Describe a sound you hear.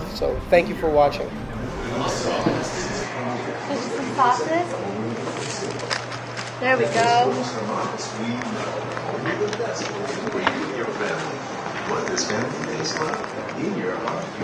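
A crowd of men and women chatter indoors in a lively, echoing room.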